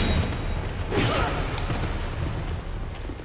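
A sword slashes and strikes a body.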